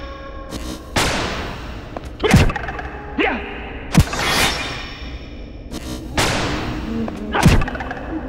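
Sword blows land with sharp, heavy hits, one after another.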